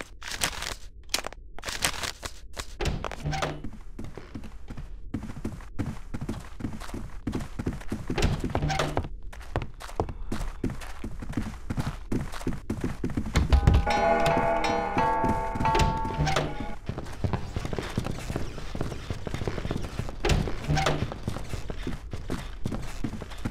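Footsteps tread steadily on a wooden floor.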